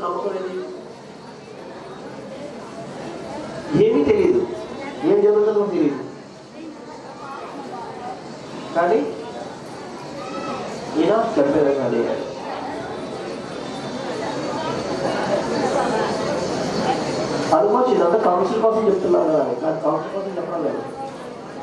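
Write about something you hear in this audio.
A man speaks calmly into a microphone, heard through a loudspeaker in a reverberant space.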